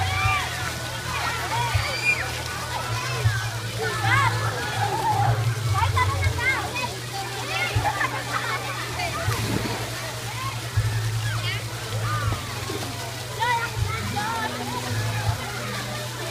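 Water splashes as children swim.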